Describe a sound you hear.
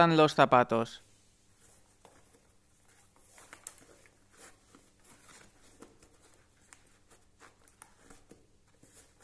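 Shoelaces rustle and slap against a shoe as they are tied.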